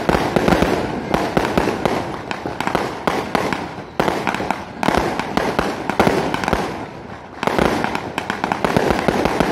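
Firecrackers crackle and pop rapidly nearby.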